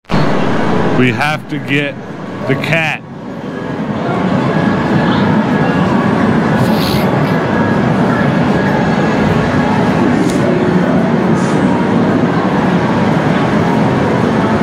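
A claw machine's crane whirs as it moves and lowers.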